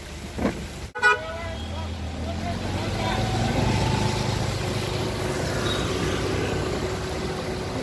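A motorbike engine rumbles as it rides past.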